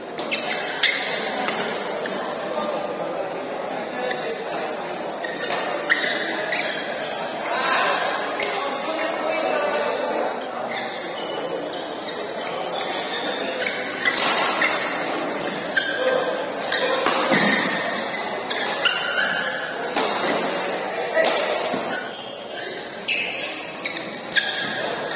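Shuttlecocks are struck with sharp racket hits in an echoing hall.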